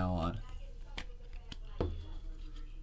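Plastic card cases click and tap in hands.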